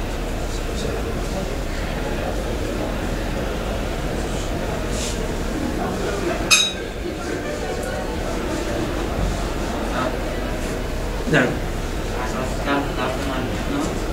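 A man wipes a whiteboard with an eraser, squeaking and rubbing.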